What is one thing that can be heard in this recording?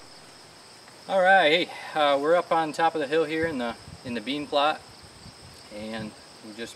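A man speaks calmly outdoors, close by.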